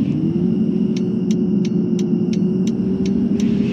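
A turn signal ticks evenly.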